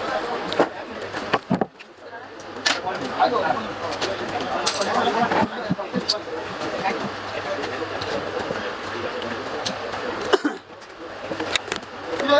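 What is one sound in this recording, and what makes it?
A paper sticker crackles as it is peeled off wood.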